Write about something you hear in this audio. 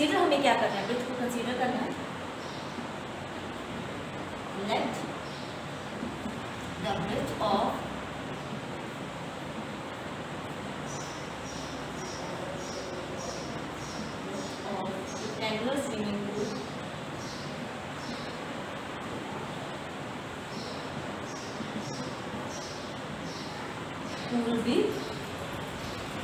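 A young woman speaks calmly and clearly, as if explaining.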